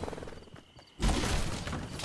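A pickaxe strikes a wooden door with sharp knocks.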